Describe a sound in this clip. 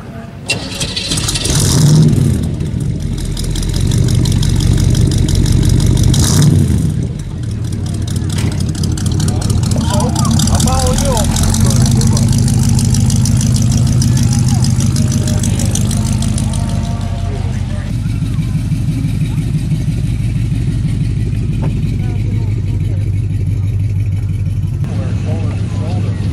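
A car engine idles with a deep, throaty rumble from its exhaust.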